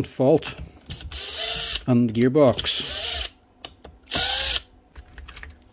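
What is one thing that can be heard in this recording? A power screwdriver whirs in short bursts.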